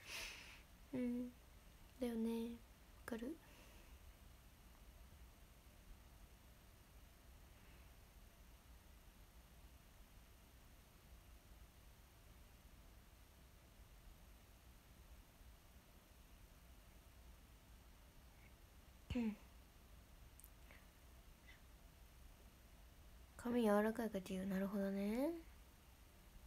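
A young woman speaks softly and briefly, close to a microphone.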